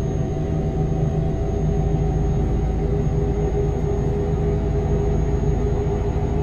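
Tyres roll and hum on a highway.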